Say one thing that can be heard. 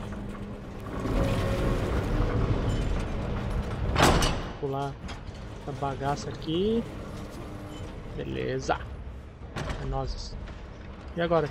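Heavy machinery rumbles and grinds as large gears turn.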